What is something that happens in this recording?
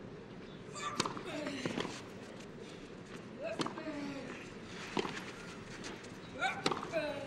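Rackets strike a tennis ball back and forth.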